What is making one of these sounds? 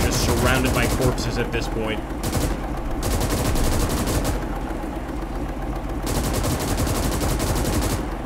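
A tank engine rumbles low and steadily nearby.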